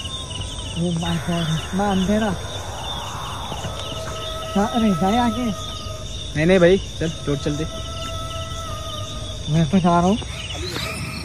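A young man speaks quietly in short bursts, close by.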